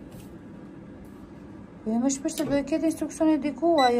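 Electronic keypad buttons beep as they are pressed.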